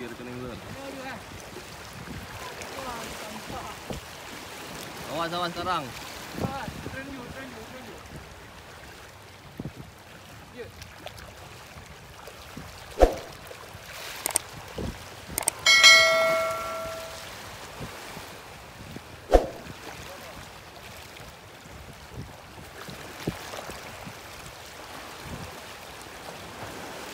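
Waves lap gently against rocks at the shore.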